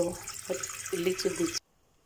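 Water runs from a tap into a pot.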